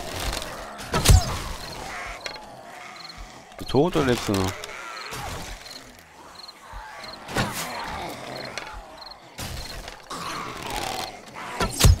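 A bow twangs sharply as arrows are shot.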